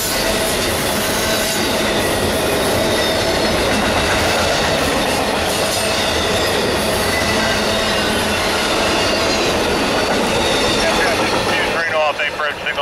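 A freight train rumbles and clatters loudly past close by.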